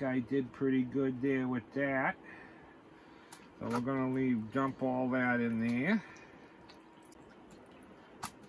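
Water sloshes in a pan.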